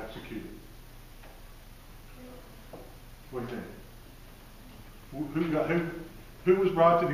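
An elderly man speaks to a group in a large room, heard from across the room.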